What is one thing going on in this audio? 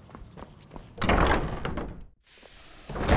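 A heavy wooden door swings open with a loud rumble.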